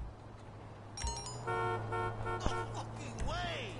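Short electronic beeps sound in quick succession.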